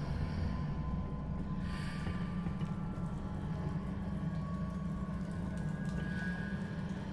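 Footsteps tap softly on a stone floor.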